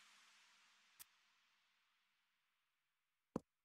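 A short electronic click sounds twice from a card game.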